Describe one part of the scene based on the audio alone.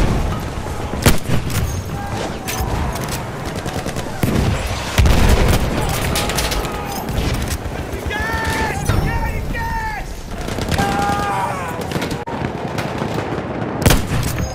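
A single-shot rifle fires.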